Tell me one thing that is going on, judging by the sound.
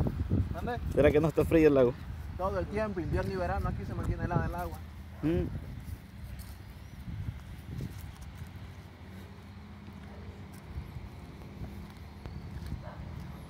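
Footsteps scuff along a paved path.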